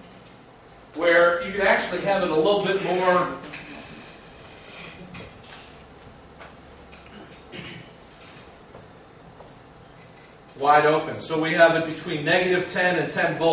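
A man lectures calmly and clearly.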